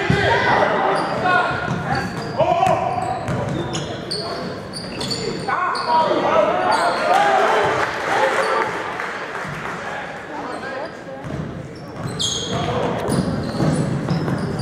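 Sneakers squeak sharply on a hardwood floor in an echoing gym.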